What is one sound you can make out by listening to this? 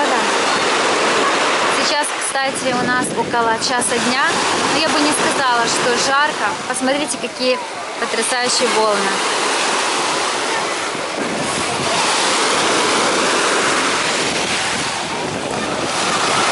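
Small waves wash and break on a shore.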